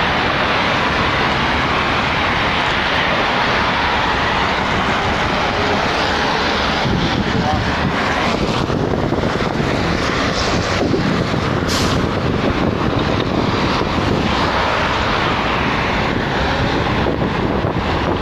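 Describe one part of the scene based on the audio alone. Traffic roars past on a busy road outdoors.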